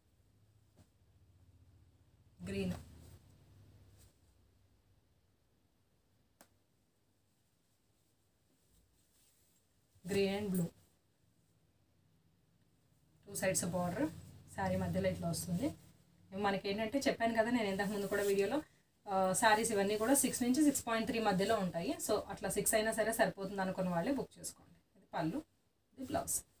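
Soft cloth rustles as it is unfolded and laid flat.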